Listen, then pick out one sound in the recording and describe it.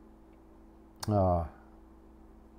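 An elderly man speaks a short phrase calmly, close to a microphone.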